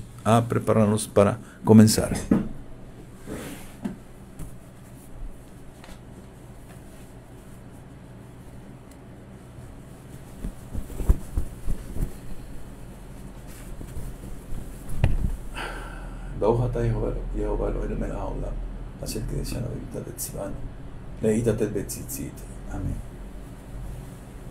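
An older man speaks calmly and close to a microphone.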